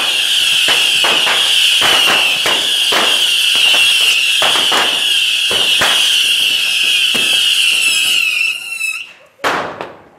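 Fireworks whistle shrilly and steadily.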